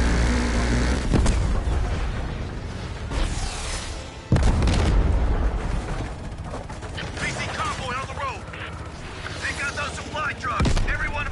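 A helicopter's rotor thuds steadily close by.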